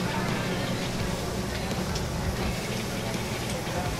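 Eggs sizzle on a hot griddle.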